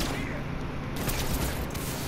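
A heavy blow lands with a dull thud.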